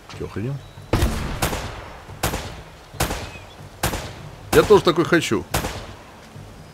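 A pistol fires several sharp shots in quick bursts.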